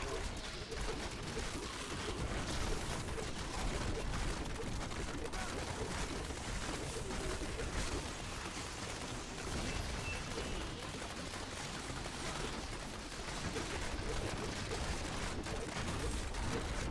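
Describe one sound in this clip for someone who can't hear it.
Magic spells crackle and burst in rapid, constant bursts.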